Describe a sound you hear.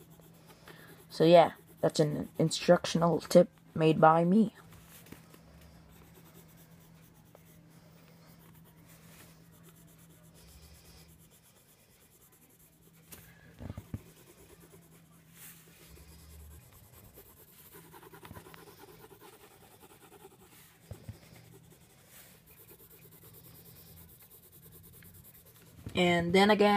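A colored pencil scratches softly across paper.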